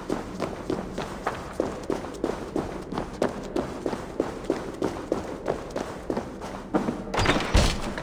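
Footsteps walk steadily on stone.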